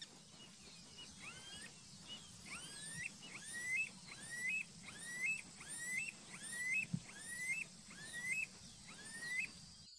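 A bird repeats a short rising whistle again and again.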